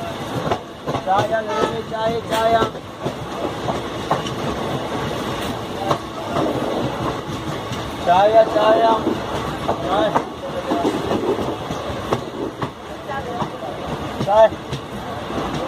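Train wheels squeal and screech against the rails.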